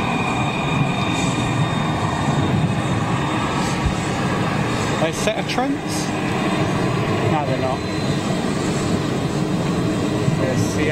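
Jet engines of an airliner hum and whine steadily as it taxis close by.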